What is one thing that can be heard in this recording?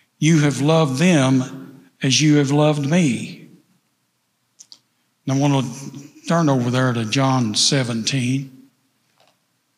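An elderly man speaks with feeling into a microphone.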